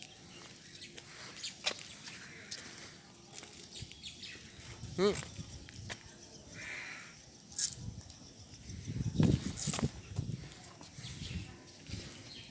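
Footsteps scuff on stone outdoors.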